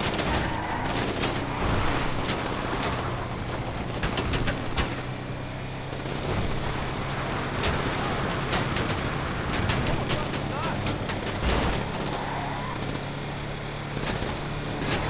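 A truck engine rumbles steadily as it drives along a road.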